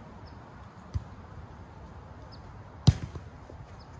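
A ball smacks sharply against a player's hand.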